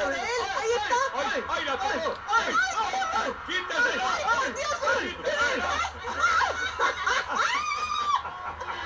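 A crowd laughs and cheers loudly.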